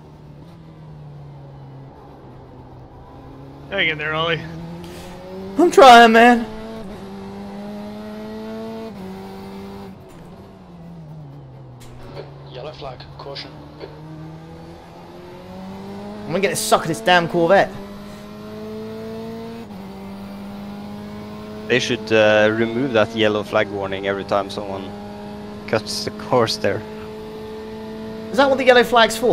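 A racing car engine drones steadily, rising and falling in pitch as it shifts gears.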